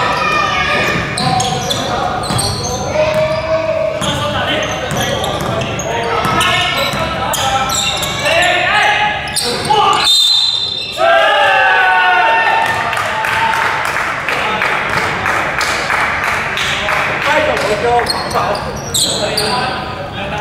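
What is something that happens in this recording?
Players shout and call out to each other across the court.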